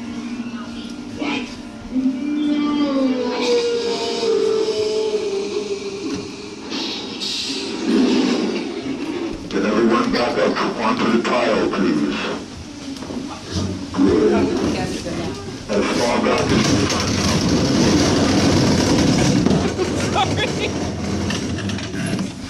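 A group of young children chatter and exclaim excitedly in an echoing room.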